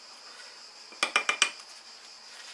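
A brush taps and rattles against a water jar.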